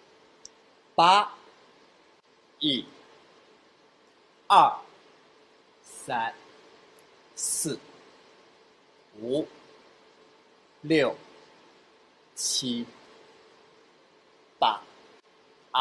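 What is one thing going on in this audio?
A man calls out counts in short, loud bursts.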